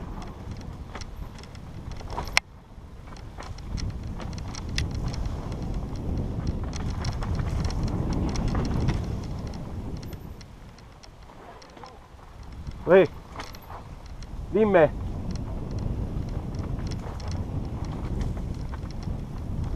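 Bicycle tyres roll and crunch over dirt and dry leaves.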